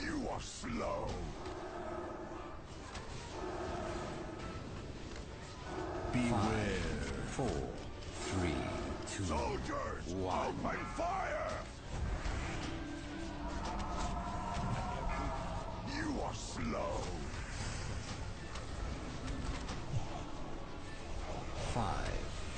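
Fantasy battle sounds of spells whooshing and crackling fill the air.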